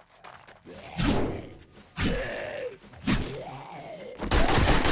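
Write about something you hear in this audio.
A zombie growls and snarls nearby.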